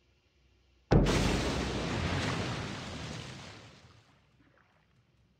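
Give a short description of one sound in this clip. A loud explosion booms close by, then rumbles and fades.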